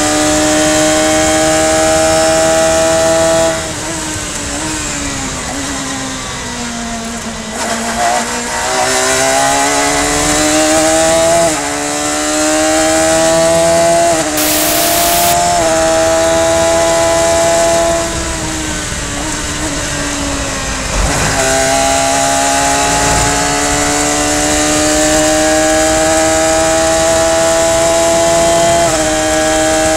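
A racing car engine roars loudly up close, climbing in pitch and dropping sharply at each gear change.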